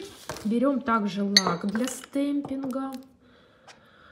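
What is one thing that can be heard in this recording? A small glass bottle is set down on a hard table.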